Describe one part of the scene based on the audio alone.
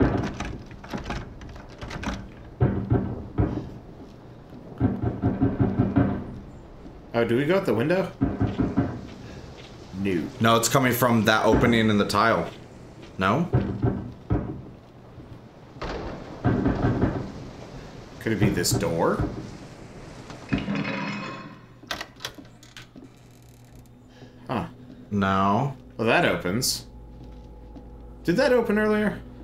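Footsteps creak slowly across old wooden floorboards.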